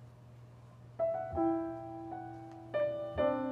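A piano plays a few chords in a large, echoing room.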